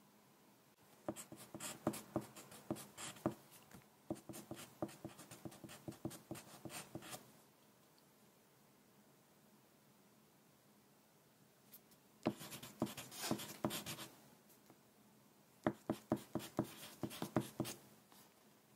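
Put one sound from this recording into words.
A pencil scratches and taps on paper close by.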